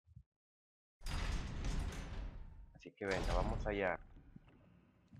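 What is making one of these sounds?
A heavy metal door creaks open slowly.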